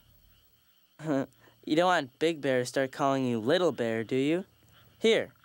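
A girl speaks brightly with animation.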